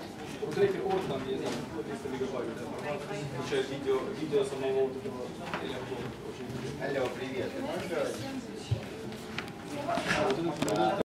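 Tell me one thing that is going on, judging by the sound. A man speaks to an audience.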